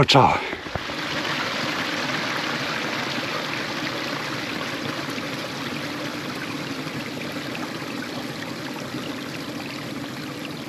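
A stream rushes and gurgles steadily nearby.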